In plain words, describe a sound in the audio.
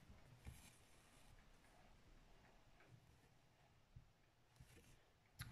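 Thread rasps softly as it is pulled through fabric.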